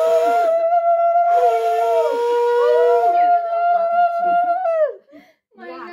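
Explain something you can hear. An elderly woman blows a conch shell in long, steady horn-like blasts.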